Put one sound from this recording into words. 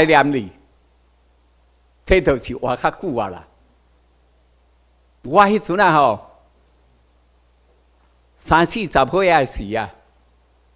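A middle-aged man speaks calmly into a microphone in short phrases, heard through a loudspeaker in a large room.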